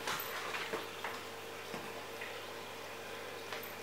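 A puppy tugs and rustles a rope toy on the floor.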